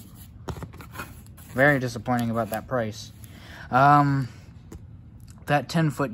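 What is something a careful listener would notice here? Cardboard flaps rustle and scrape as a box is opened.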